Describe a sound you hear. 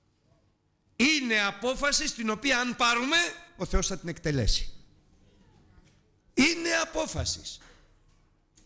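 A middle-aged man preaches with animation through a microphone.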